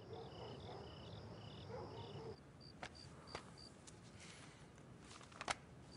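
Pages of a book rustle as they are turned.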